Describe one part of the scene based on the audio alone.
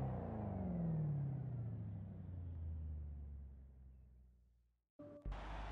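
A car engine winds down with a falling hum and fades away.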